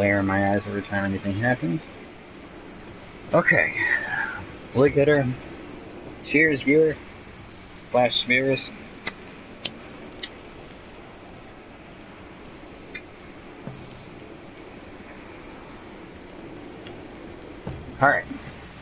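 A campfire crackles softly.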